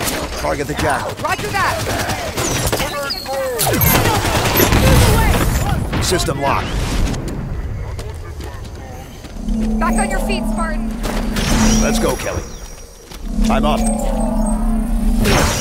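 Gunfire rattles in a video game.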